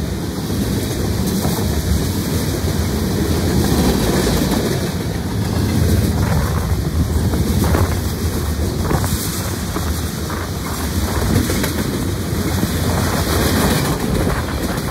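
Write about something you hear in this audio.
A freight train rumbles past close by at speed.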